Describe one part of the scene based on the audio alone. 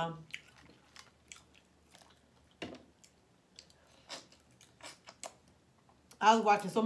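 A young woman chews and smacks her lips close to a microphone.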